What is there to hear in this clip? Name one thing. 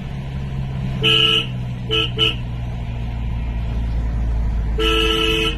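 A truck horn honks in short and long blasts.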